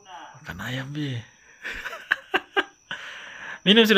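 A young child laughs nearby.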